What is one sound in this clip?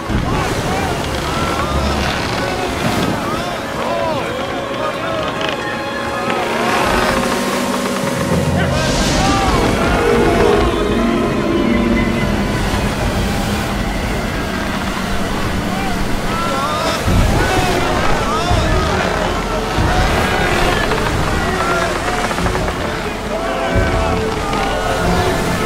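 Waves crash and roar against a boat.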